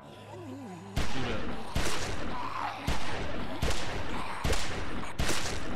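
A pistol fires shots in a video game.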